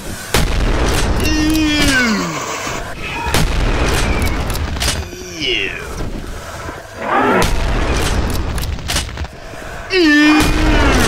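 A double-barrelled shotgun fires with loud booming blasts.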